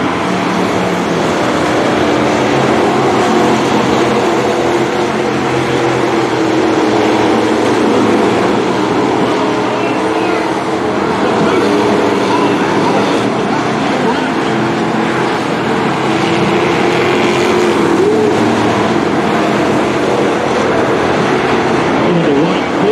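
Race car engines roar loudly as they speed around a dirt track.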